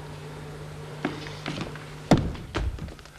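Footsteps thud heavily across a wooden stage floor.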